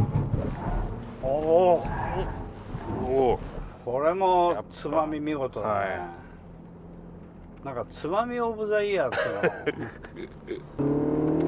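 A middle-aged man talks with animation inside a moving car.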